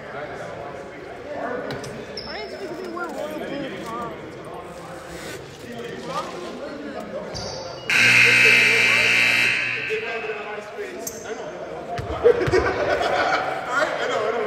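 Men talk with animation in a large echoing gym.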